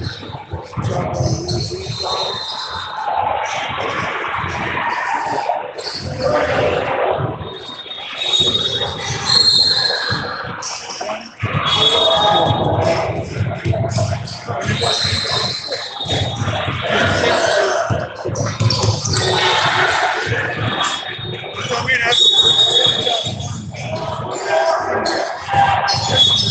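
Spectators and players talk and call out, echoing around the hall.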